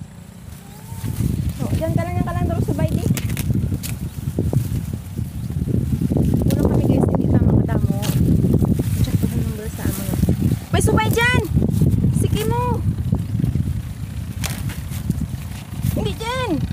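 Dry corn leaves rustle and crackle close by.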